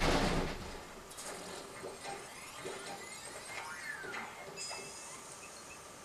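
A shredding machine crunches something up with a quick burst.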